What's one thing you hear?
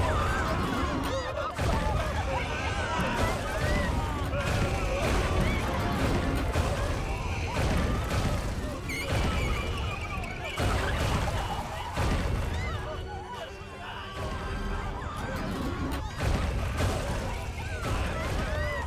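Small creatures shriek in high voices as they run away.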